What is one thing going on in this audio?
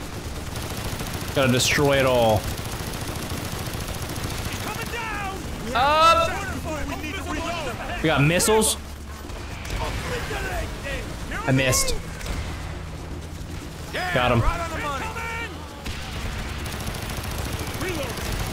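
Machine gun fire rattles in bursts.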